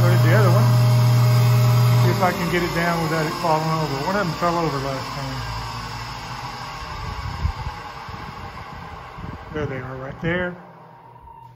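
A machine motor hums loudly, then winds down and falls quiet.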